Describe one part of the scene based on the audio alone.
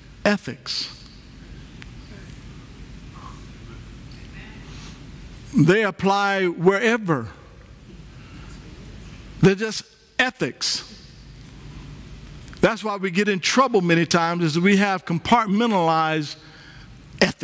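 A man speaks with animation through a headset microphone, with pauses.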